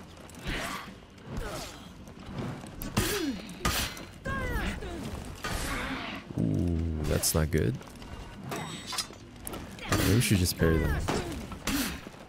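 Swords and axes clash and clang in a fight.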